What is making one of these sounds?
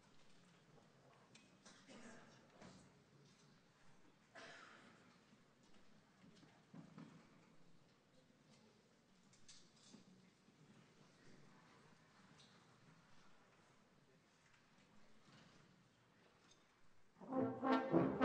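An audience murmurs and chatters quietly in a large echoing hall.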